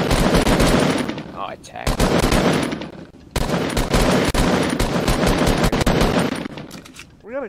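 An automatic rifle fires in a video game.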